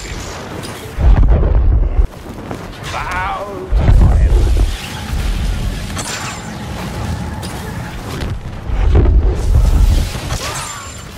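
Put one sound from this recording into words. Lightsabers hum and clash in heavy booming bursts.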